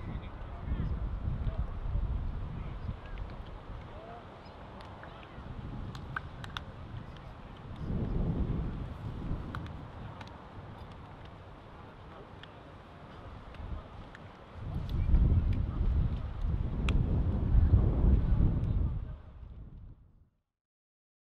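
Young men chat and call out faintly in the distance outdoors.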